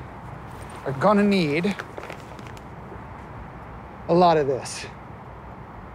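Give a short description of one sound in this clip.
A man speaks with amusement, close by.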